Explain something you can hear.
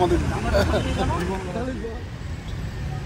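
Men talk in a crowd close by.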